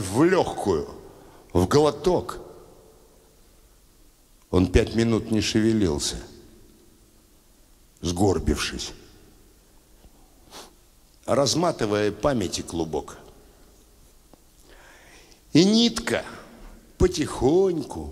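An elderly man speaks with animation into a microphone in a large echoing hall.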